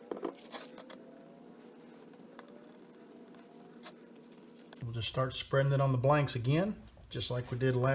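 A tool rubs and scrapes over crinkling plastic wrap.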